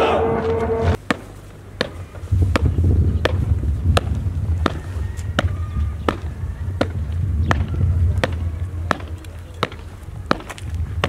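Boots stamp in unison as a group marches on hard ground.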